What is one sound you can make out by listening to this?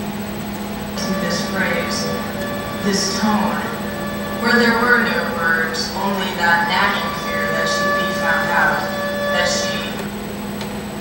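A violin plays a melody.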